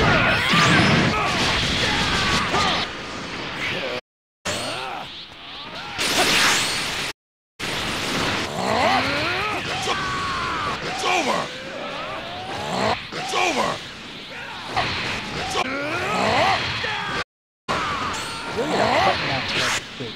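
Energy blasts roar and crackle loudly.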